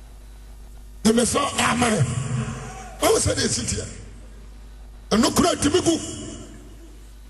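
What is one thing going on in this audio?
A man preaches forcefully into a microphone, in bursts with pauses, in a large echoing hall.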